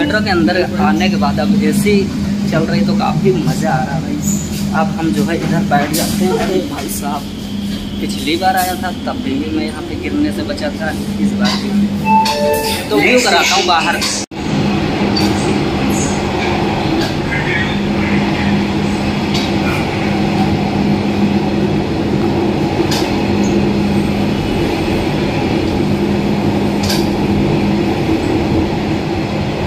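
A train hums steadily as it rolls along.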